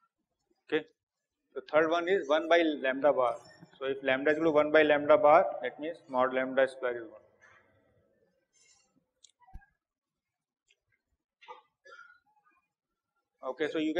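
A middle-aged man speaks calmly through a clip-on microphone, with pauses.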